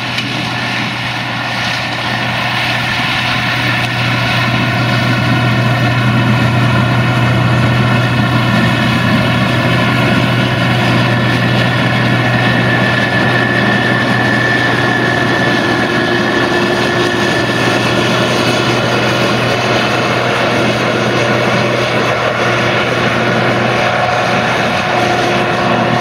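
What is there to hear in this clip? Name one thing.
Dry stalks crackle as a harvester cuts through them.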